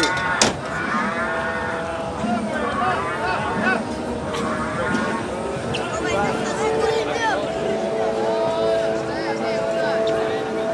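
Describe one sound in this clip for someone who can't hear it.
A barrel organ plays a tune.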